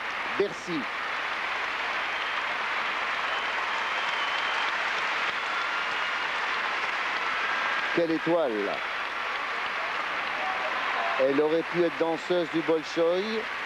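A large crowd applauds in an echoing arena.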